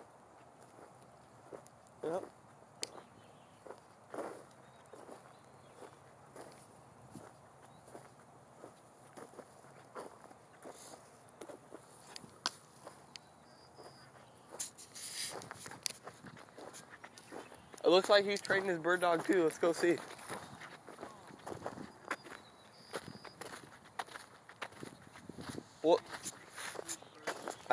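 Footsteps crunch over dry grass and dirt.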